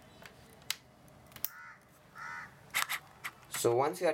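A cable plug clicks into a laptop's socket.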